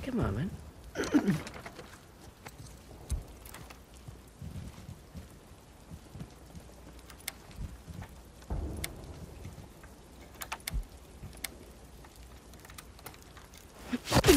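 A metal door handle rattles and clicks.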